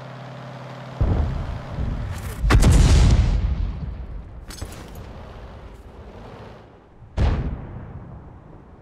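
A tank gun fires with heavy booms.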